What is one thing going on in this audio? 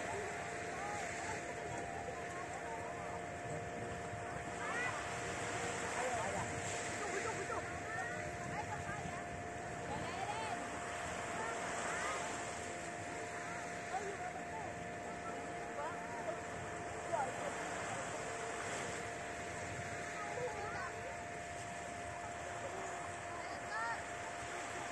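Small waves wash softly onto a sandy shore.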